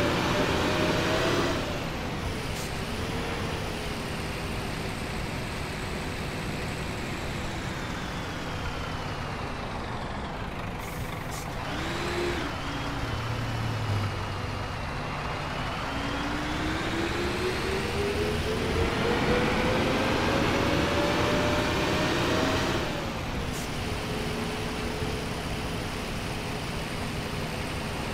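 A bus engine hums steadily, rising and falling in pitch as the bus speeds up and slows down.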